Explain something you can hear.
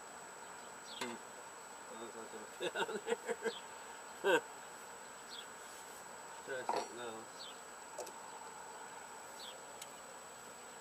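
Metal tools clink and knock against a small engine.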